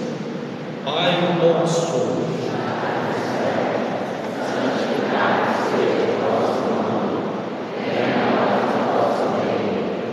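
A crowd of people murmurs and chatters in a big echoing hall.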